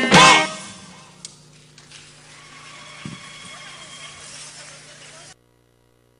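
A band plays lively music.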